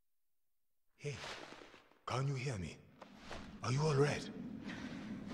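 A man calls out with concern, close by.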